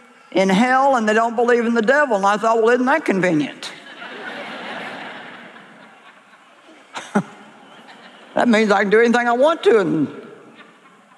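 A middle-aged woman speaks with animation into a microphone, in a large hall.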